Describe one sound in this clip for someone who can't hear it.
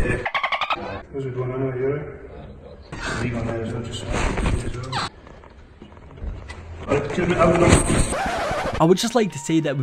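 A young man speaks casually and nearby.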